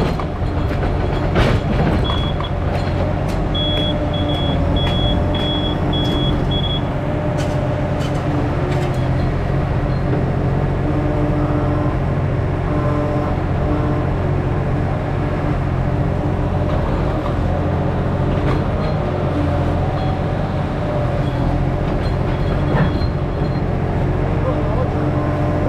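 A digger's diesel engine rumbles steadily close by.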